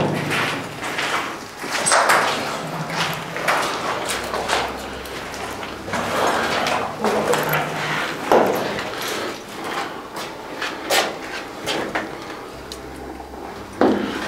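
Footsteps crunch on debris underfoot.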